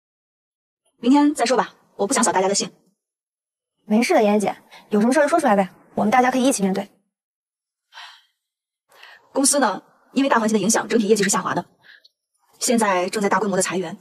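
A young woman speaks calmly and firmly, close by.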